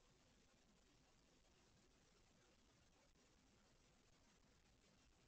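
Cats scuffle softly on a fabric blanket.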